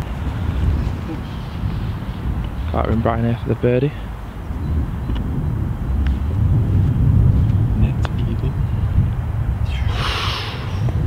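Wind rumbles across open ground outdoors.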